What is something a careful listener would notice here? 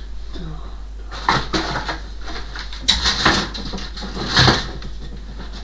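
Objects knock and rustle on top of a wardrobe.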